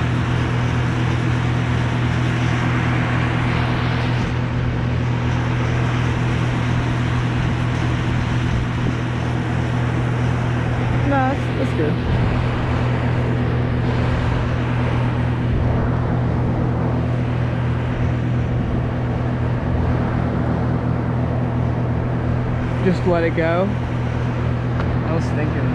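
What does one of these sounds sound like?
A chainsaw engine idles close by with a steady low drone.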